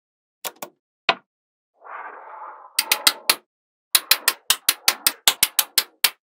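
Small metal balls click sharply together, one after another.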